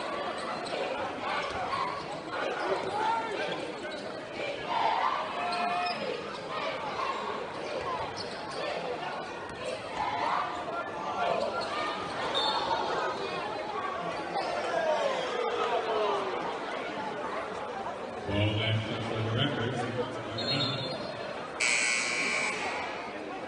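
A large indoor crowd chatters and cheers, echoing around a big hall.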